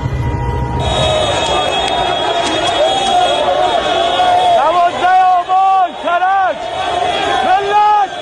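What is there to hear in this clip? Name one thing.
A large crowd chants loudly together.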